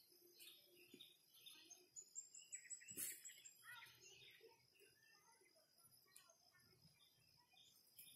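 A small child runs barefoot on soft soil with light, quick footsteps.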